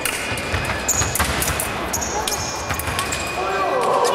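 A fencing scoring machine sounds a tone.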